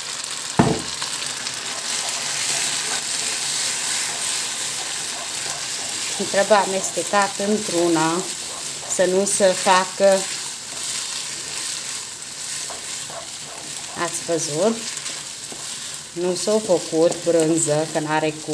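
A wooden spoon stirs and scrapes through noodles in a pan.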